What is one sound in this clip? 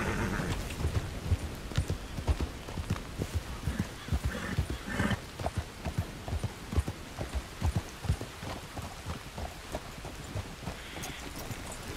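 Horse hooves clop steadily over ground and rock.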